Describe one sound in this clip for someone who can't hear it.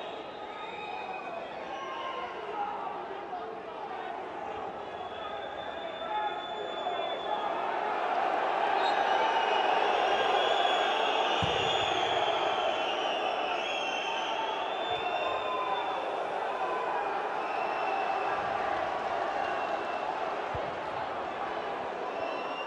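A crowd cheers and chants loudly in a large stadium.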